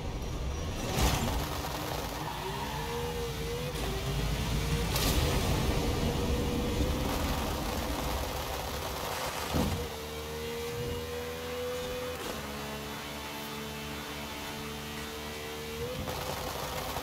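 Gears shift with short bursts in the engine's pitch.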